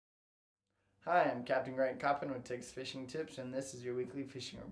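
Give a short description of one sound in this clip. A young man talks calmly and with animation, close to a microphone.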